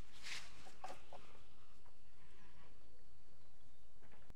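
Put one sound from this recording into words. Hands press into soft soil.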